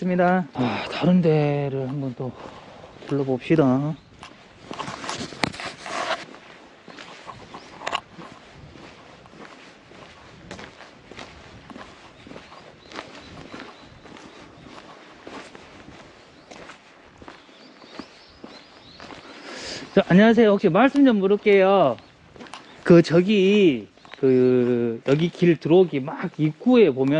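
Footsteps scuff on a paved road.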